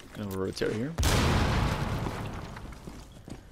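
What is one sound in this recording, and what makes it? A breaching charge blasts through a wall with a loud rushing roar.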